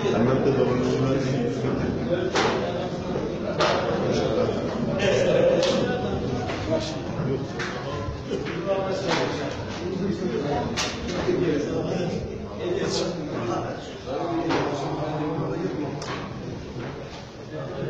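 A crowd of men talk and murmur close by.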